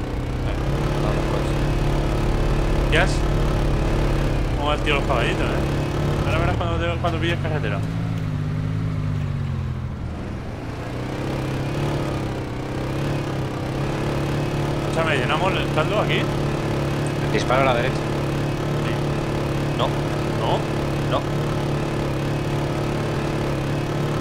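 A motorbike engine drones steadily, its pitch dipping and rising briefly.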